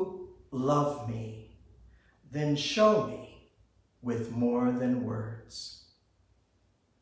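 A man speaks calmly and clearly into a microphone, close by.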